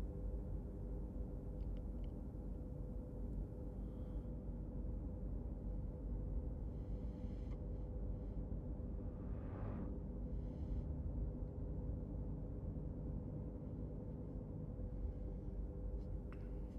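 A car engine hums steadily, heard from inside the cabin.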